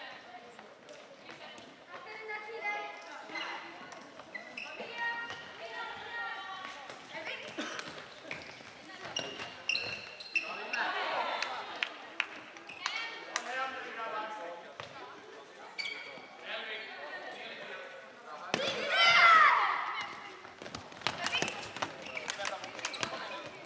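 Rubber shoes squeak on a hard floor.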